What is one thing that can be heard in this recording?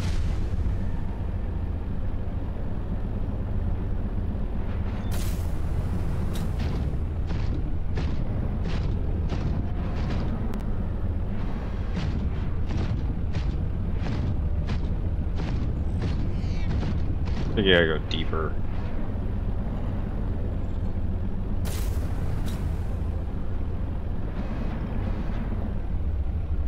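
A submarine's engine hums low and steady underwater.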